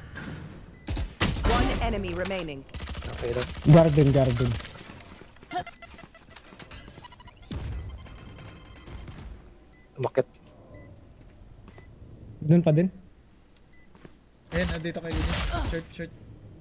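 A rifle fires bursts of rapid, sharp shots.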